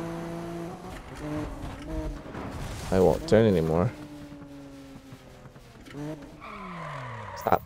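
A car engine roars and revs, rising and dropping in pitch as gears change.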